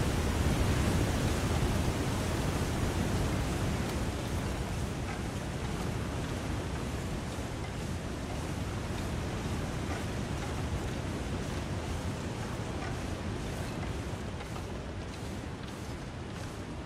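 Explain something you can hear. A strong wind blows steadily through a snowstorm, easing slightly over time.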